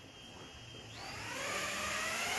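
Small drone motors whir and rise in pitch as they spin up.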